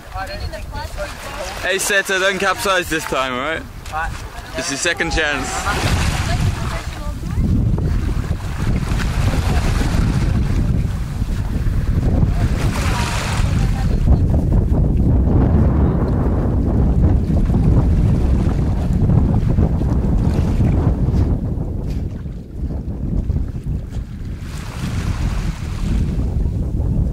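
Water splashes and laps against a wooden boat.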